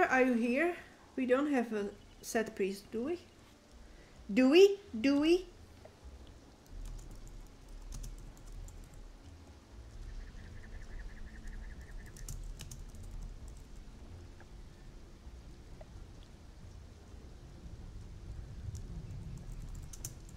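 Water laps gently at a shore.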